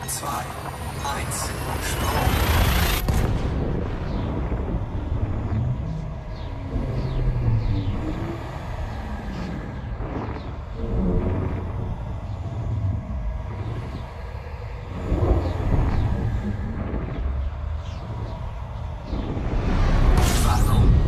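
A spaceship engine rumbles deeply and steadily.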